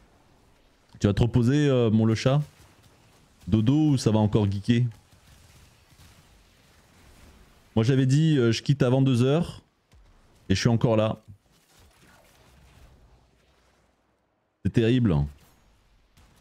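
A man speaks into a close microphone in short bursts.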